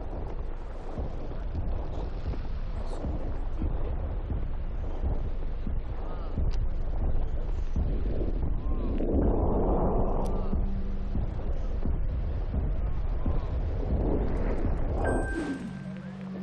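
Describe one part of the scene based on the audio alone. Giant creatures stomp about with a deep, heavy rumble.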